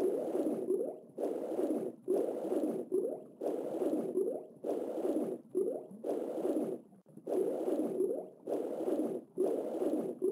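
Water swooshes in steady, rhythmic strokes as a swimmer glides underwater.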